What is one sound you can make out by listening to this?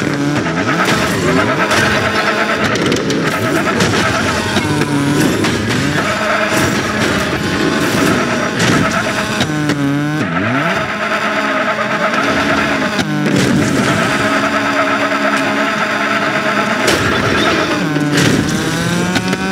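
A racing car engine revs loudly and changes pitch.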